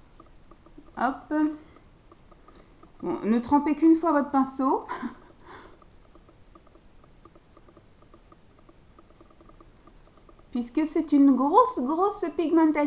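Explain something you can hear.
A woman talks calmly close to the microphone.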